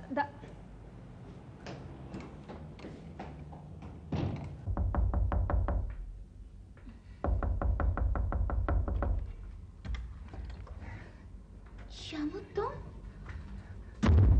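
A woman speaks with surprise close by.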